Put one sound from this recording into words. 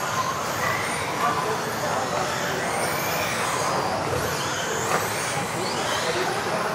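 Small electric motors whine as radio-controlled cars race around in a large echoing hall.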